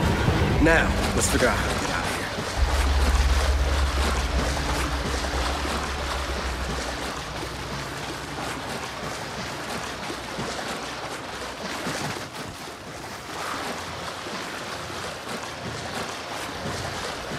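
Heavy boots tread on a wet stone floor.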